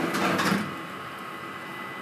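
A scraper scrapes across batter.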